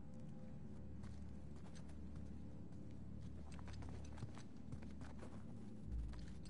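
Footsteps scuff and tap on stone.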